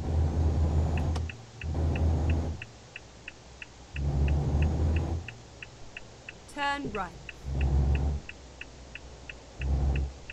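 A turn indicator ticks steadily.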